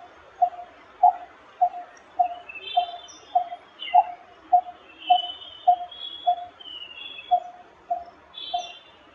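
A coppersmith barbet calls a monotonous series of hollow tuk notes.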